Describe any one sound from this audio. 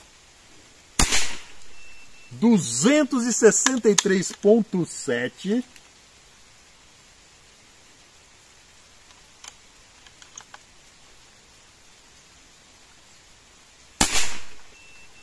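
An air rifle fires with a sharp crack.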